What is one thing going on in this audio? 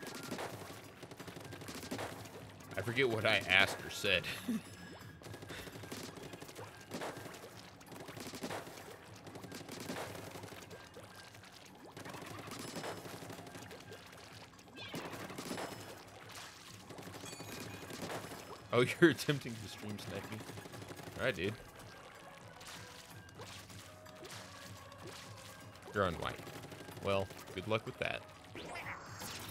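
A paint gun fires in wet, splattering bursts.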